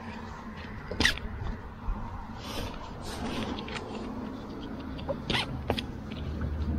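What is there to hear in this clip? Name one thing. A plastic buckle clicks.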